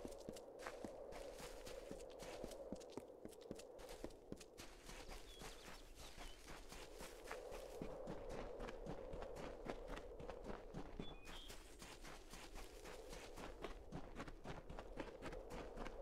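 Footsteps thud quickly on grass as a character runs.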